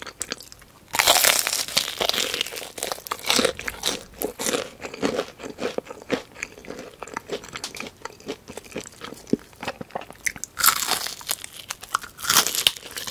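A woman bites into crispy fried chicken with a loud crunch, close to a microphone.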